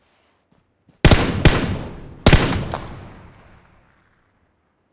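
Two loud rifle shots crack and echo away.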